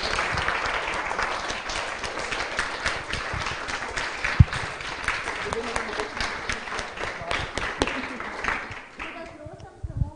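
A small audience claps.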